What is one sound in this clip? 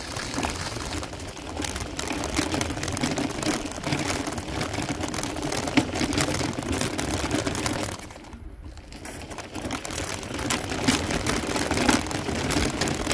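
Bicycle tyres crunch steadily over a gravel road.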